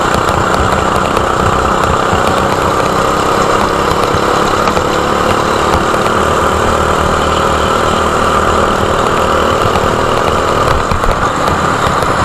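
Other kart engines whine nearby.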